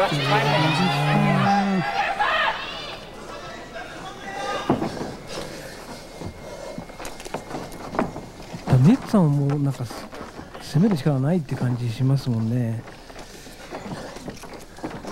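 Wrestlers shuffle and thud against a canvas mat.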